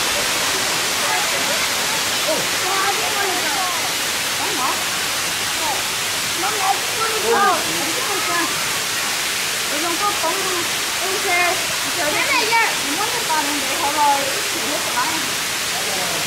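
Children talk and call out with animation close by, outdoors.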